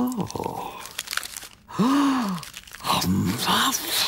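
Paper crinkles as a man unrolls a map.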